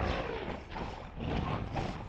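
A fiery blast booms.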